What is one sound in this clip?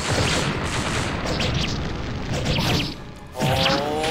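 Flames roar and burst in a fire attack.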